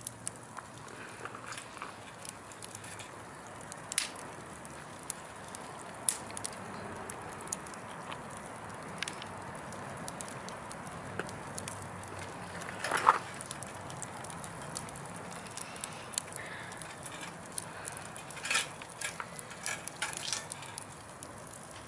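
Burning logs crackle and pop.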